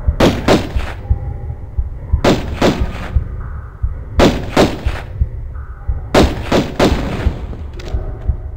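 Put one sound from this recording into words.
A heavy stone block scrapes and grinds in short bursts.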